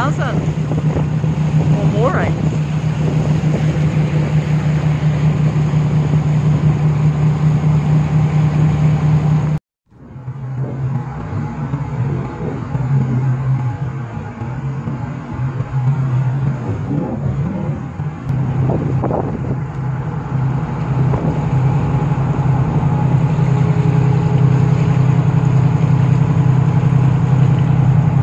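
A boat engine drones steadily.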